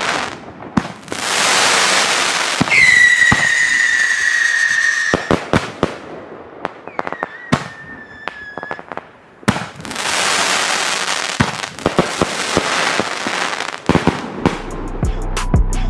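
Rockets whoosh and hiss as they shoot up.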